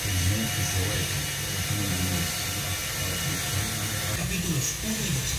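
A radio plays hissing static and faint broken sound through a loudspeaker.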